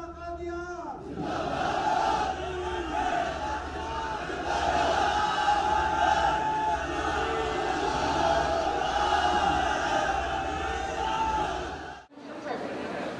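A large crowd of men chants in unison.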